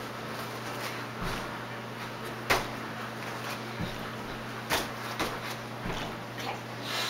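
Feet thump as a girl lands on a foam mat.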